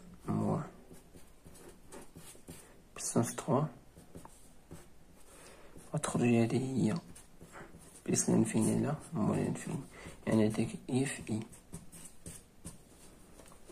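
A ballpoint pen writes on paper.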